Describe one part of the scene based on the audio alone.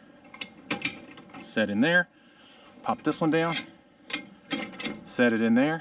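A metal step leg clicks as it is adjusted by hand.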